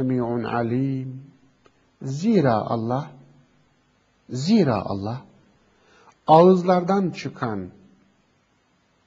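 A middle-aged man reads aloud in a measured chant close to a microphone, pausing between phrases.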